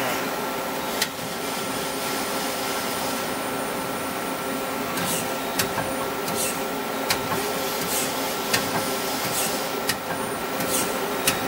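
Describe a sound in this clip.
A tool turret clunks as it turns and locks.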